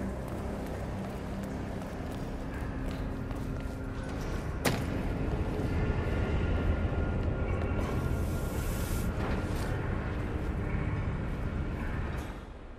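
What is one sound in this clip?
Footsteps tap on a hard floor.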